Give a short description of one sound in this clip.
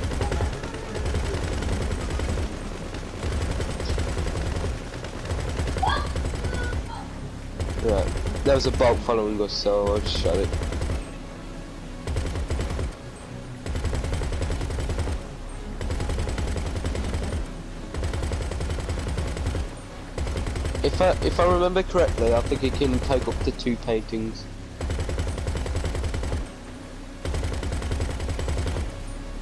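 A boat engine rumbles low and steady, cutting in and out.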